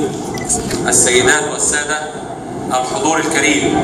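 A man speaks formally through a microphone.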